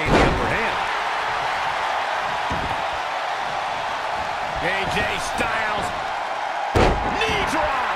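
Heavy bodies slam onto a wrestling ring mat with loud thuds.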